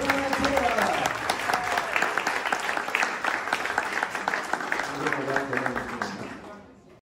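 A large crowd claps and applauds loudly in an echoing hall.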